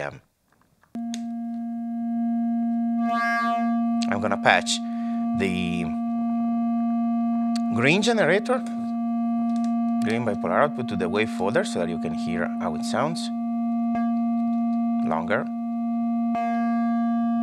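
A modular synthesizer hums a steady low drone.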